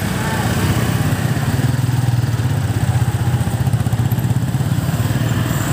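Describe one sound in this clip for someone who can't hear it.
A motorcycle engine putters steadily close by.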